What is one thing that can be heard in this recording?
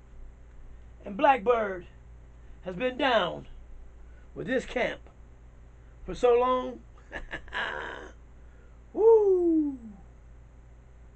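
A man speaks loudly and with animation, close by, in short bursts.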